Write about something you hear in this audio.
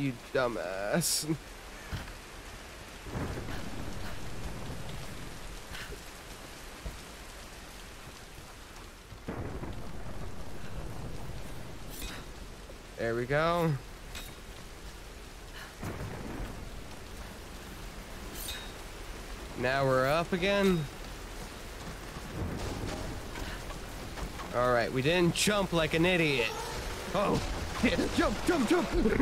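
Heavy rain pours steadily outdoors in a strong wind.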